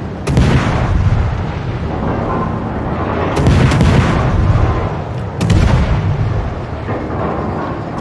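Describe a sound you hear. Shells explode with deep booming blasts.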